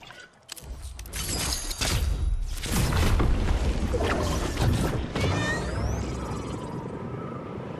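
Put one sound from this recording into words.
A deep rushing whoosh roars up and slowly fades.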